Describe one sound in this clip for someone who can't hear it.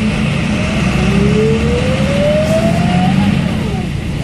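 An electric motor whines, rising in pitch as the bus speeds up.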